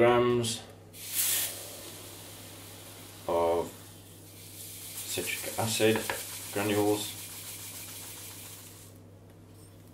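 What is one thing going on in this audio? Fine grains pour and hiss through a funnel into a plastic bottle.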